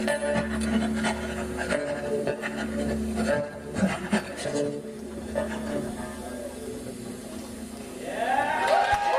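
A harmonica wails loudly through a microphone.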